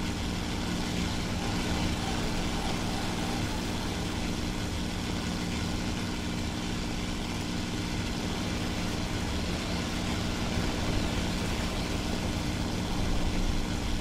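Wind rushes past an aircraft in flight.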